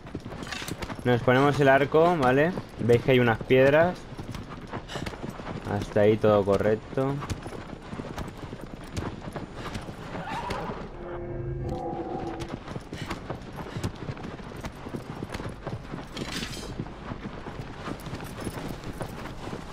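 A horse gallops with quick, steady hoofbeats on sand.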